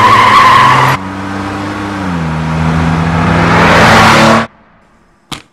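A car engine hums as a car drives by on a road.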